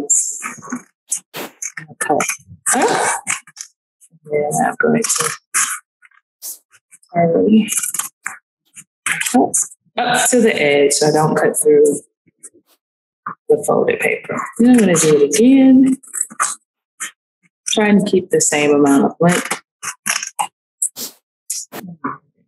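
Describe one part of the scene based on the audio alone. Scissors snip through stiff paper.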